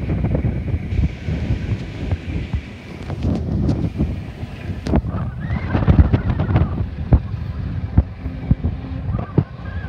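Wind gusts outdoors and buffets loudly.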